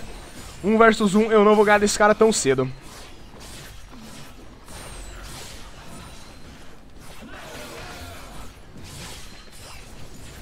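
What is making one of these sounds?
Blows and crackling magic effects sound in a fight with a monster.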